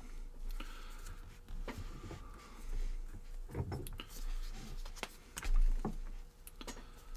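A phone is handled close by with soft knocks and rustles.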